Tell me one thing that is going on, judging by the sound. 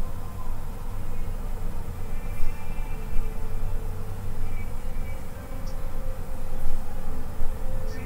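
An elderly woman speaks through a microphone.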